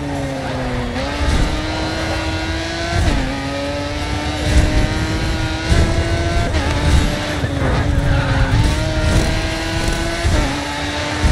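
A race car engine roars loudly, rising in pitch and dropping sharply with each gear change.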